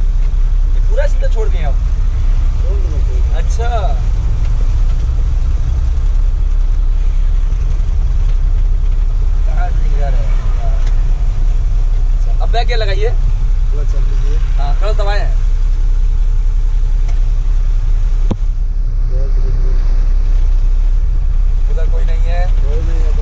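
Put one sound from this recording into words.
A man speaks briefly at close range.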